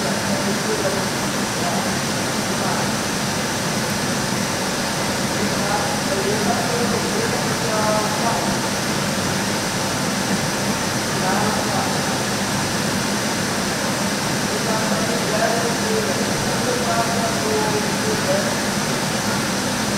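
Young riders call out to each other in a large echoing hall.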